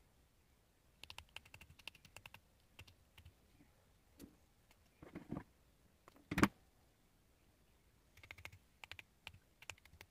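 Small metal parts click and clink together in a man's hands.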